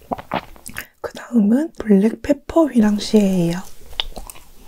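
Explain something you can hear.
A young woman hums with delight close to a microphone.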